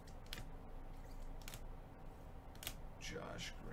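A plastic card sleeve crinkles.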